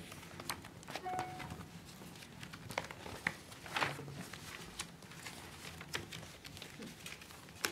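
Paper pages rustle.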